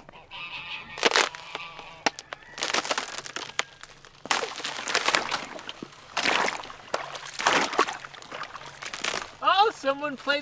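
A boot stomps on ice, cracking and crunching it.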